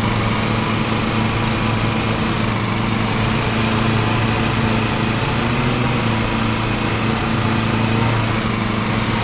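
A riding mower engine drones steadily while cutting grass.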